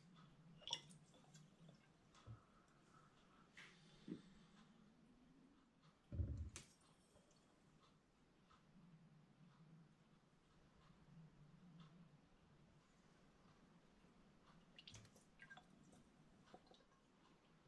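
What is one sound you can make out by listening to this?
A plastic tube knocks and clinks against glass bottles.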